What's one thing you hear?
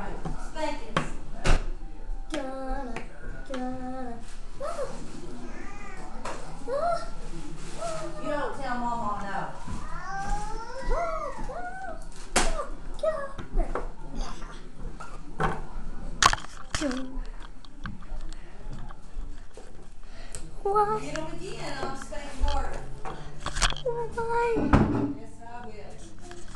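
A young child talks animatedly close by.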